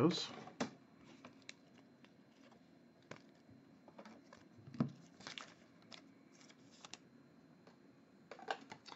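Trading cards flick and shuffle against each other.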